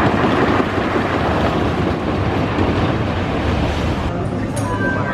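A roller coaster train roars past on wooden tracks.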